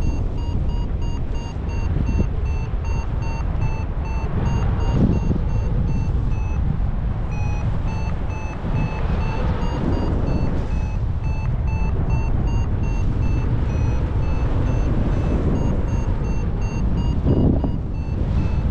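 Strong wind roars and buffets outdoors throughout.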